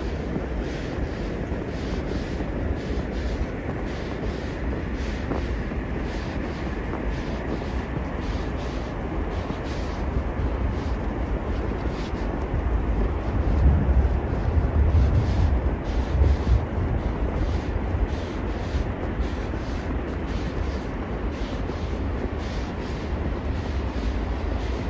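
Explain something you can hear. Wind rumbles and gusts outdoors.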